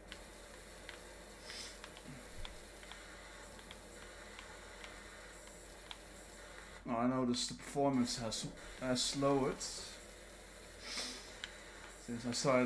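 A pressure washer sprays water with a steady hiss.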